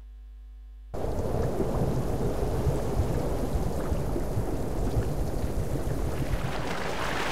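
Water swirls and bubbles underwater.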